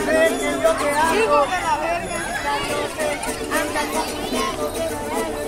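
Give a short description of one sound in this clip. A crowd of children and adults chatters and calls out outdoors.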